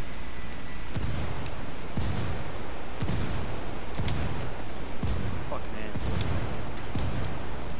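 Heavy explosions boom and rumble one after another.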